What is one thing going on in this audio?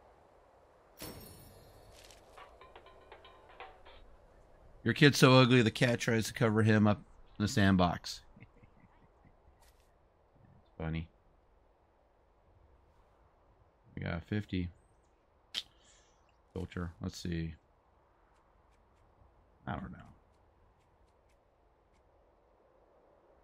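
Game menu cards flip over with short swishing clicks.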